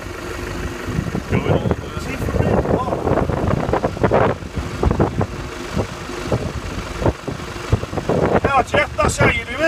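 An Isuzu Trooper four-wheel-drive engine labours as the vehicle creeps down a steep grassy slope in the distance.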